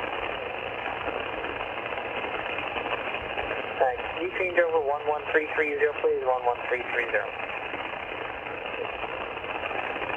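Static hisses steadily from a radio receiver's loudspeaker.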